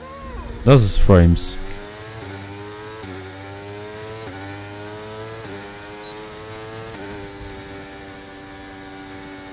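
A racing car engine whines and climbs in pitch, dropping briefly at each gear change.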